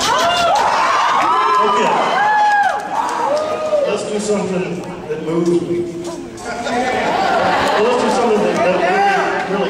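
A man sings into a microphone, heard over loudspeakers in a large echoing hall.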